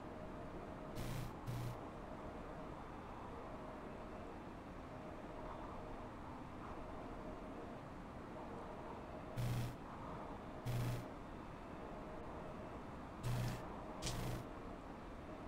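Train wheels clunk over rail joints.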